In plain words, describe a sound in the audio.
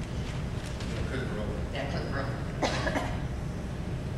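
A man speaks calmly into a microphone, heard distantly through loudspeakers in a large echoing hall.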